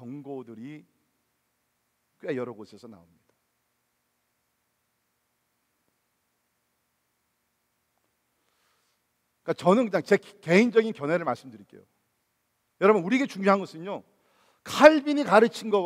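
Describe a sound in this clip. A middle-aged man speaks with animation through a microphone, with pauses.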